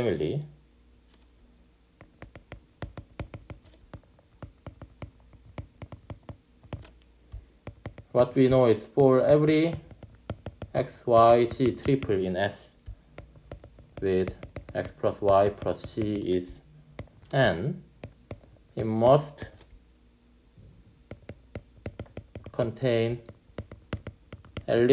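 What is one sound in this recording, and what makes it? A stylus taps and scratches on a tablet.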